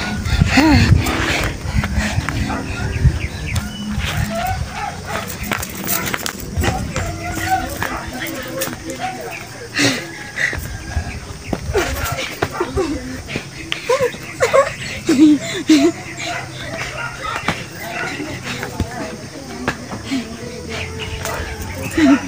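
A young man shouts nearby.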